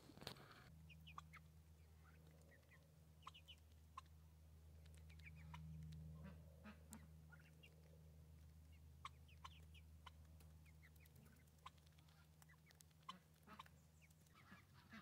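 Birds peck softly at gravel.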